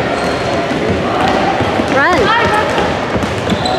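Girls and spectators shout in a large echoing hall.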